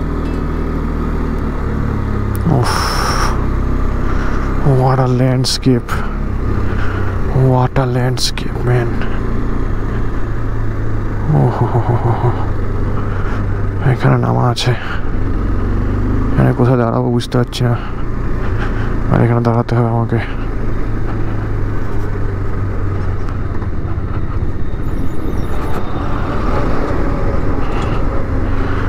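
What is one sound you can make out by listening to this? A motorcycle engine hums and revs up repeatedly through the gears.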